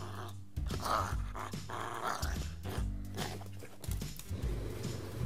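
A dog gnaws and chews on a hard bone.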